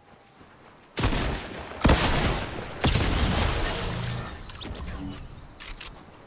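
A rocket explodes with a heavy boom.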